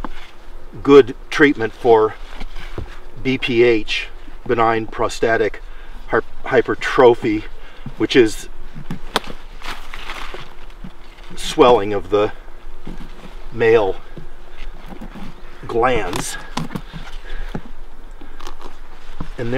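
A knife cuts into a firm pumpkin rind.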